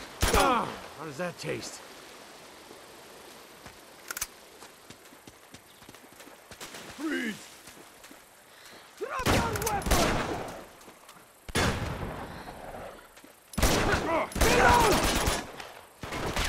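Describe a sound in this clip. Gunshots crack in short, loud bursts.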